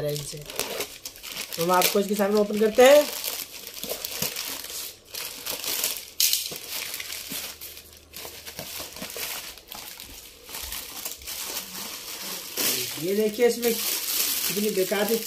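A plastic bag crinkles and rustles close by.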